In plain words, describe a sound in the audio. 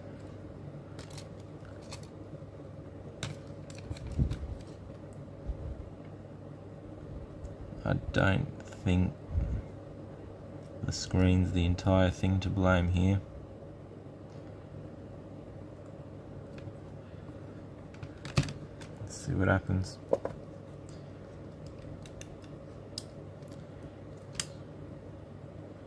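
Small plastic and metal parts click and tap softly as they are handled.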